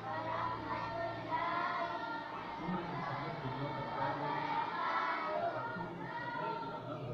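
A group of young girls recite together in unison, close by.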